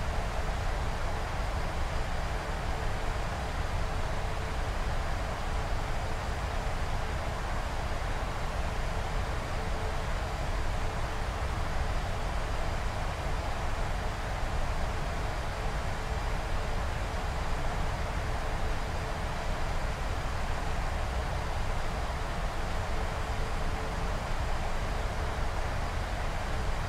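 Jet engines roar steadily with a constant rushing of air around the cockpit.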